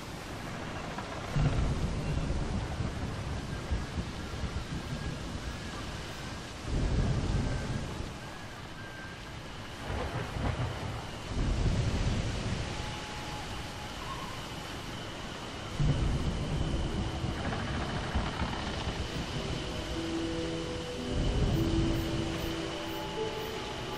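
Wind blows steadily over open sea.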